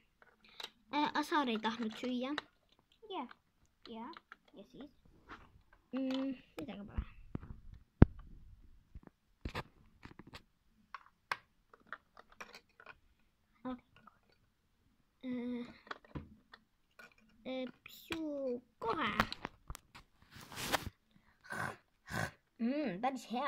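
Plastic toy bricks click and clatter against each other.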